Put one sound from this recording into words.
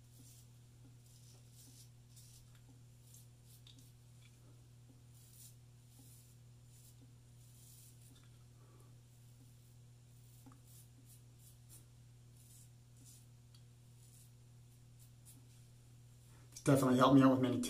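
A razor scrapes softly over stubble.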